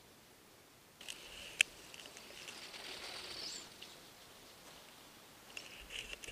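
A small remote-controlled car whines as it drives across snow.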